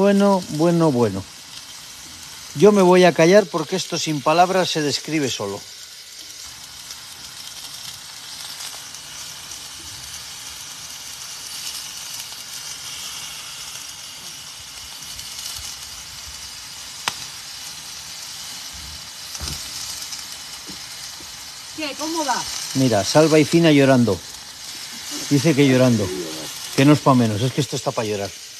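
A steak sizzles steadily on a hot grill.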